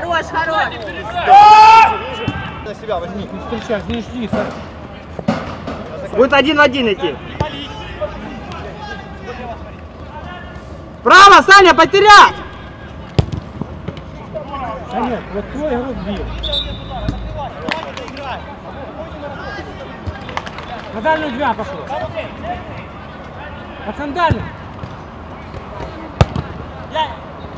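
Men shout to each other across an open pitch, distant and echoing.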